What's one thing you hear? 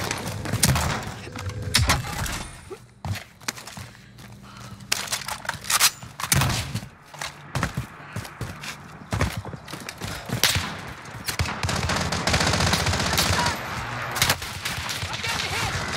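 Gunshots crack in sharp bursts.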